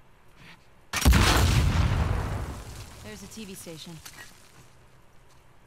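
A loud explosion bursts nearby and rumbles away.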